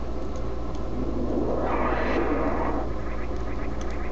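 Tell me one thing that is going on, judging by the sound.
A large explosion roars in a video game.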